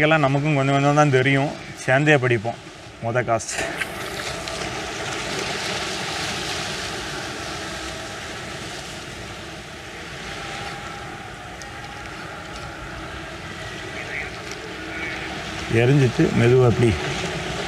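Gentle waves wash against rocks.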